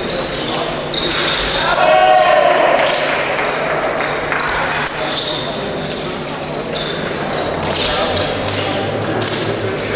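Fencing blades click and clash.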